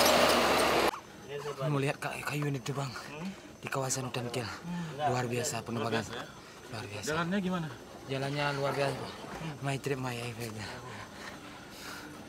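A young man talks casually up close.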